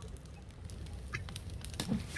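A small campfire crackles softly.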